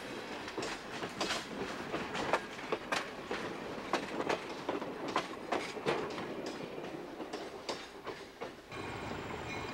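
Train wheels click over rail joints as railcars roll past.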